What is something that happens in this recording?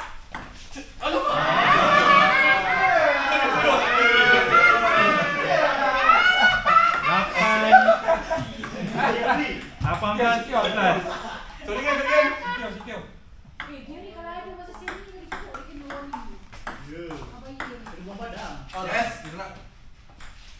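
Several men talk and laugh loudly nearby.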